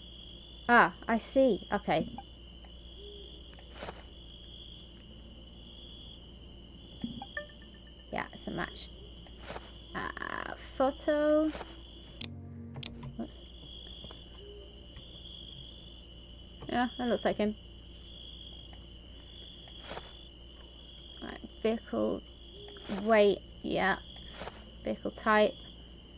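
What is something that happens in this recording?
A young woman talks animatedly and close into a microphone.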